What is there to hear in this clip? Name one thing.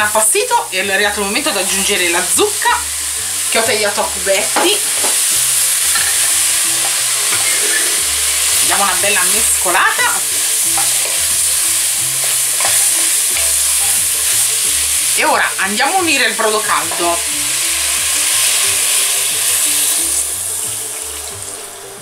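Food sizzles in a hot pot.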